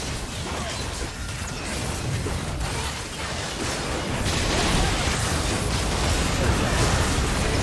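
Magic blasts and explosions crackle in a busy fight.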